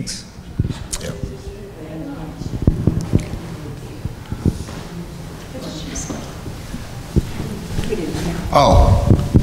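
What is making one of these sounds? Another man speaks from a distance in an echoing hall.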